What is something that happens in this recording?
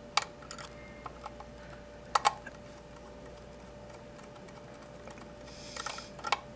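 A screwdriver clicks and scrapes against small plastic terminals.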